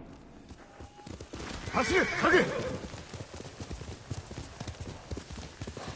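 A horse gallops with quick, rhythmic hoofbeats on soft ground.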